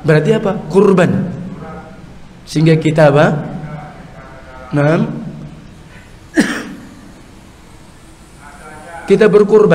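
An elderly man speaks with emphasis into a microphone, in bursts with pauses, his voice echoing in a large room.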